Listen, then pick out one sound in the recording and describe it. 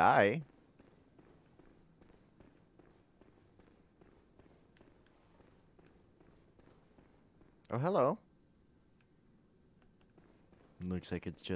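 Footsteps clatter on a stone floor.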